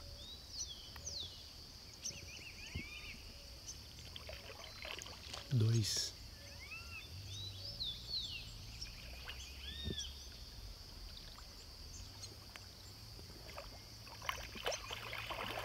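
Water splashes and sloshes as an animal thrashes at the surface.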